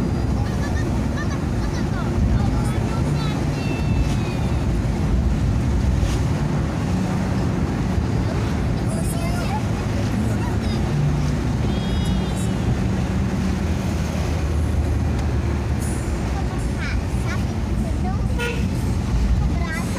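Tyres roll on a paved road.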